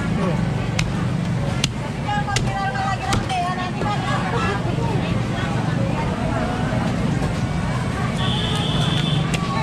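A cleaver chops sharply on a wooden block.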